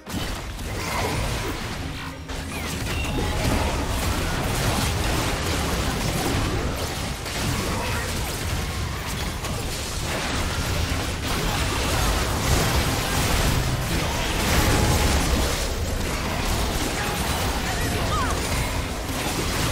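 Spell effects whoosh and crackle as game characters fight.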